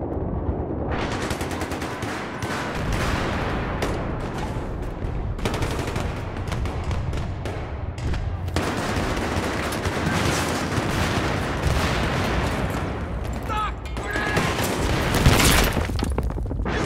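A rifle fires in rapid bursts nearby.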